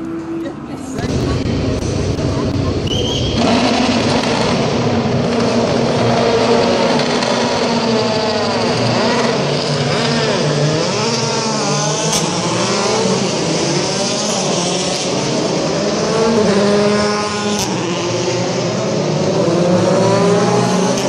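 Racing car engines roar and whine as the cars speed past.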